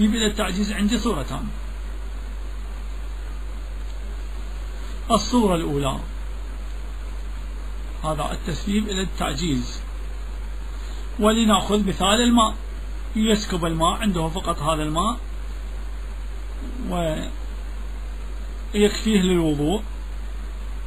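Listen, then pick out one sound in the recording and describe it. A man speaks slowly and deliberately in short phrases, with pauses between them.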